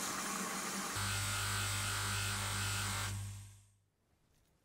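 A buffing wheel whirs against a metal nut.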